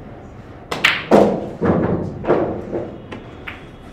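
Billiard balls knock together and roll across the table.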